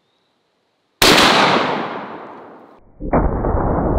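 A shotgun fires with a loud, sharp boom.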